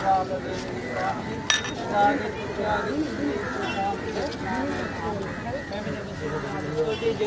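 A crowd of men and women talk and murmur close by, outdoors.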